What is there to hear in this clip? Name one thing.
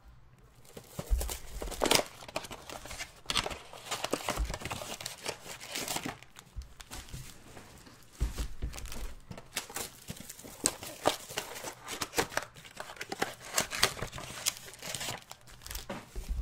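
Cardboard packs rustle and tap as they are handled.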